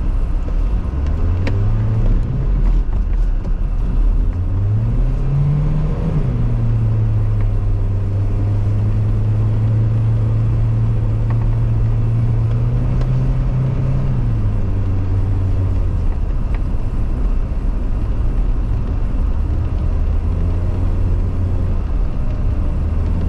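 A car engine hums and revs from inside the car as it drives.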